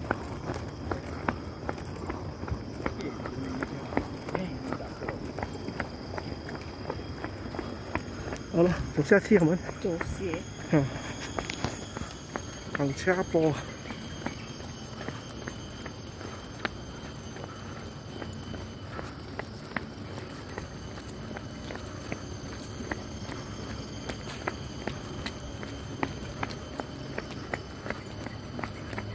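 Footsteps tap on a paved path.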